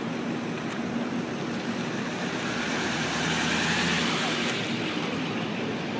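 An ambulance engine rumbles as it passes close by.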